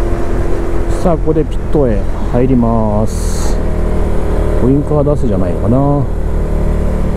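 A motorcycle engine revs up and down sharply through gear changes.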